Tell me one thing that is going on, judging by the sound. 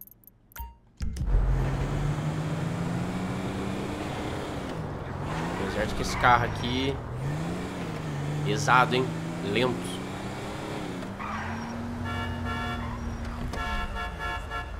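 A car engine hums and revs as it drives.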